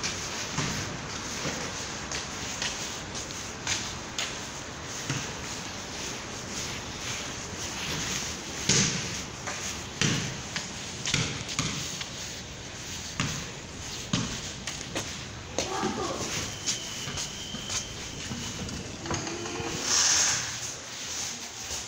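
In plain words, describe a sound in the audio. Footsteps tap on a hard floor in a large, echoing hall.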